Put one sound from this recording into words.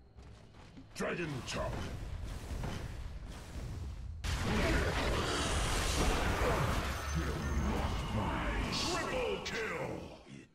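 Spells crackle and clash in a game battle.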